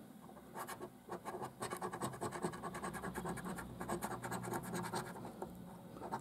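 A coin scratches rapidly across a card, close by.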